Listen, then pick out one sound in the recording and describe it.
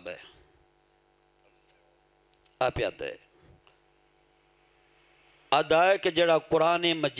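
A man speaks forcefully into a microphone over a loudspeaker.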